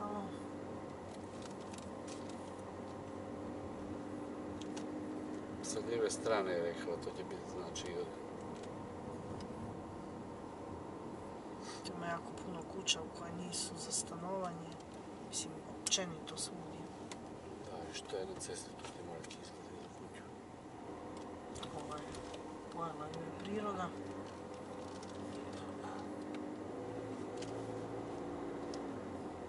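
A car engine hums steadily from inside the car as it drives slowly along a road.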